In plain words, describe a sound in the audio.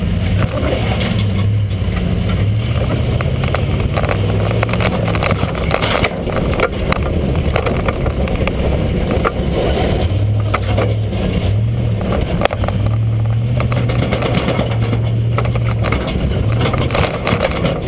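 A truck drives along with a loud, steady road rumble and engine hum.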